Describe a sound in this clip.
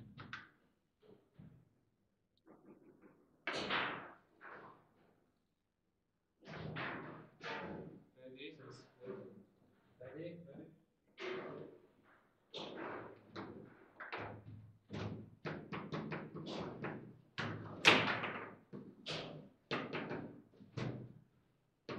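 A small ball knocks and clacks against plastic figures on a table-football table.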